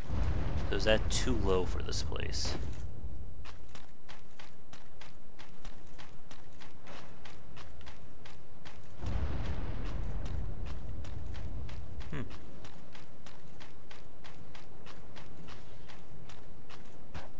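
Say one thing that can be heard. Armored footsteps crunch steadily through snow.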